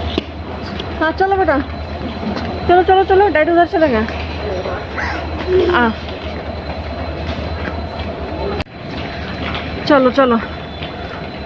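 A young child talks loudly and excitedly close by.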